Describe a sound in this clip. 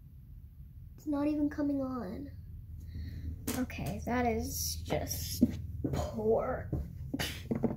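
A young girl talks close by, with animation.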